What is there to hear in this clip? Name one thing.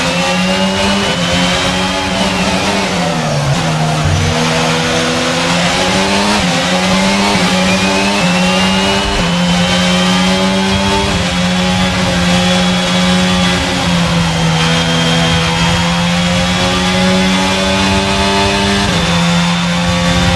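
A racing car engine roars at high revs, dropping in pitch as it slows for a corner and rising again as it shifts through the gears.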